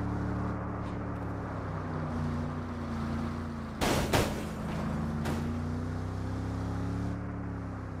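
Tyres rumble over a road.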